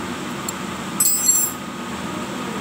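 Metal clanks and rattles briefly.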